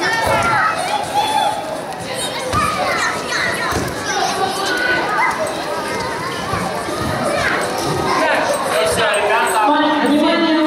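Young children chatter and call out in an echoing hall.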